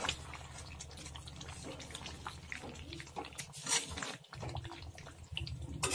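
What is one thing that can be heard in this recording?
A metal spoon stirs thick curry in a metal karahi.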